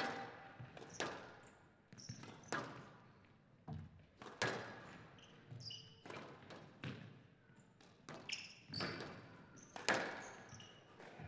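A squash ball is struck hard and smacks against the walls, echoing in a large hall.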